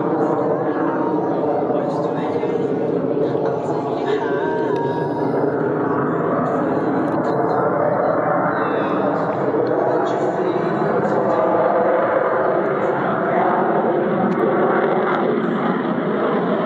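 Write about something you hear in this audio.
A jet engine roars steadily overhead from far off.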